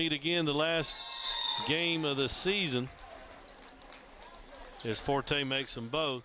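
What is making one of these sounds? Sneakers squeak on a hardwood court as players run.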